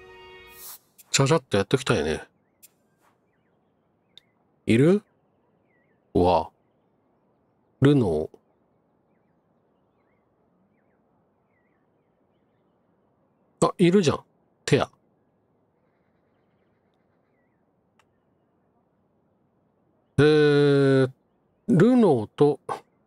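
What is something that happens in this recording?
Short electronic menu chimes blip now and then.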